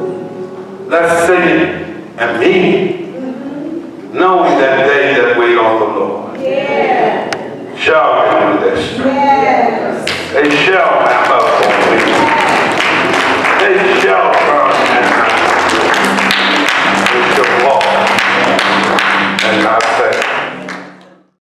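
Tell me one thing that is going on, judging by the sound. An elderly man preaches loudly and with animation through a microphone in an echoing hall.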